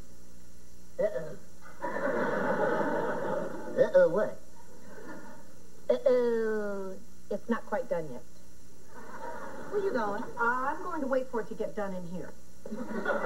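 A woman speaks with animation, close by.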